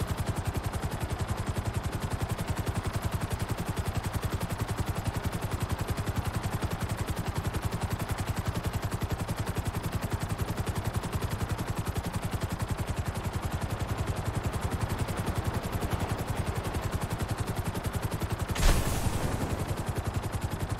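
A helicopter's rotor chops steadily and rapidly as it flies.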